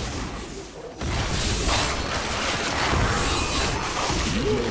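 Weapons clash and bones clatter in a fight.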